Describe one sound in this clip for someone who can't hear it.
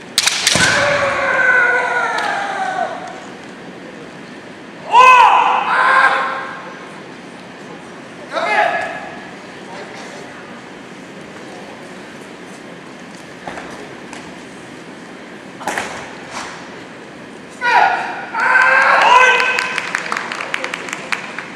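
Young men shout loud, drawn-out cries in an echoing hall.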